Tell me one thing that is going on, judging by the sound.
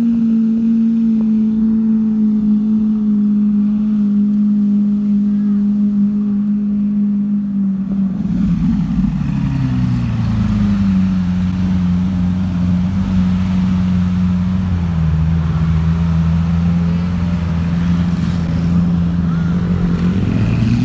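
A car engine hums low and steady, then revs up and settles into a deeper drone.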